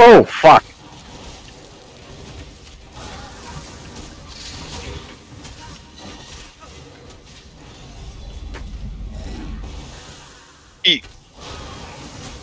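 Weapons strike against monsters.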